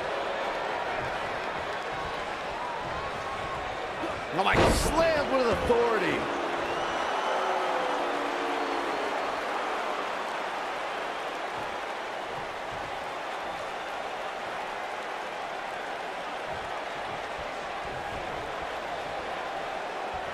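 A large crowd cheers and murmurs steadily in a big arena.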